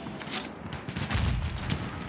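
An explosion booms in the distance.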